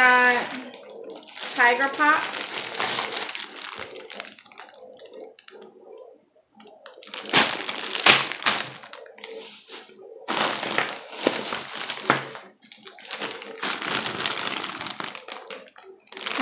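A woman talks casually, close by.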